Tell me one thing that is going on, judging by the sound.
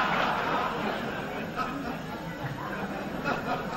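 A crowd of people laughs together.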